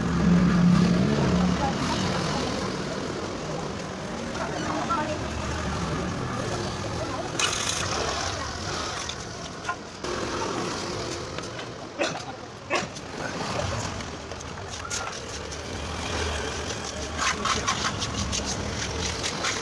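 A trowel scrapes wet cement on a concrete ledge.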